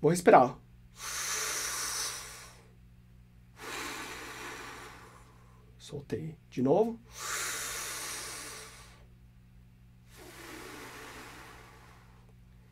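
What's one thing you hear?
A man breathes out long and slowly with a steady hiss.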